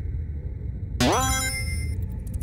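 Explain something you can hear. A quick rising game sound effect chirps.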